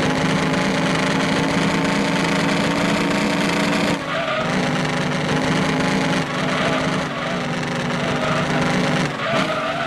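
A synthesized racing game sports car engine drones at high speed in top gear.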